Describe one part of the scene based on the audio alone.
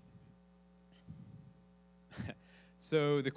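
A young man speaks haltingly through a microphone.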